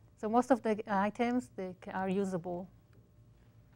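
A woman talks calmly through a microphone.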